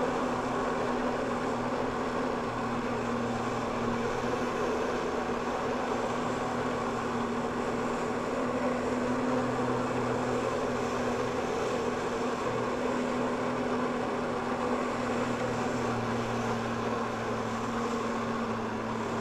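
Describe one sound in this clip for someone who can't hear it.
A jet of water roars and sprays steadily.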